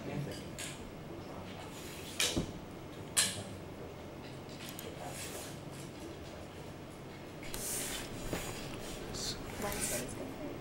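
A metal tripod clanks and clicks as a man adjusts its legs.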